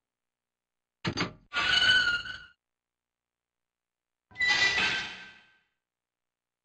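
A heavy metal gate creaks and clanks open.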